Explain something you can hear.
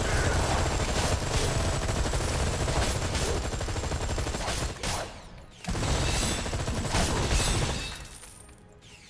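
Gunfire and blasts crackle and boom in a fight.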